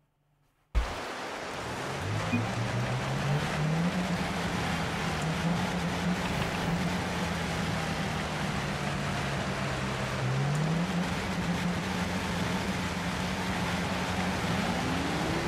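A car engine hums steadily and revs up now and then.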